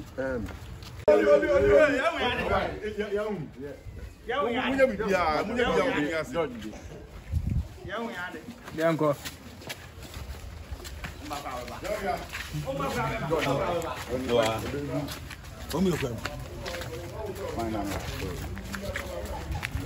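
A crowd of men and women chatter and call out.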